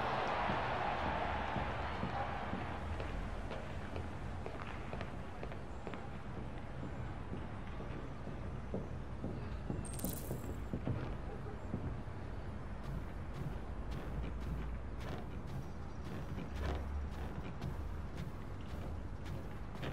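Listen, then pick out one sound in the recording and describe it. Footsteps thud on a wooden floor and creak up wooden stairs.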